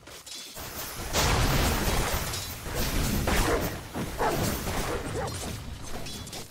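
Magic spells crackle and burst with clashing weapon sounds in a game battle.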